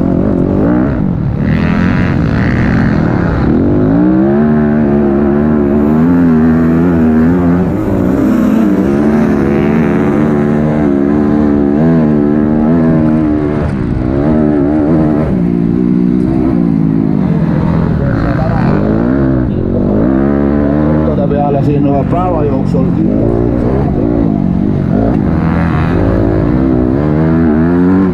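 A dirt bike engine roars close by, revving up and down through the gears.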